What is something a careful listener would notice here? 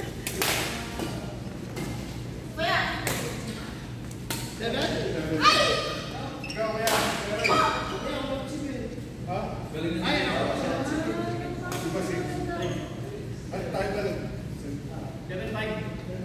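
Young people talk and call out during play.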